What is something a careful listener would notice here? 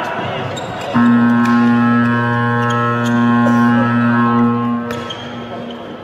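A loud buzzer sounds steadily in a large echoing hall.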